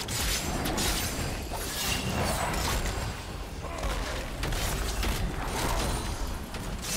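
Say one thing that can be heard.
Video game spell effects whoosh and crackle in quick bursts.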